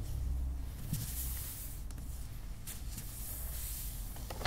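Hands smooth and rub across a sheet of wrapping paper.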